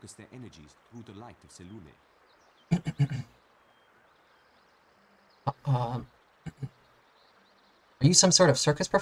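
A young man talks casually and close into a microphone, in short bursts.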